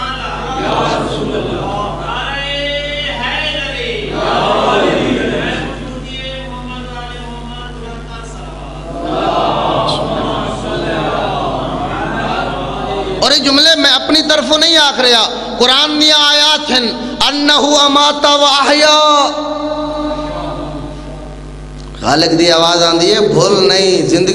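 A man speaks with animation into a microphone, heard over loudspeakers in an echoing hall.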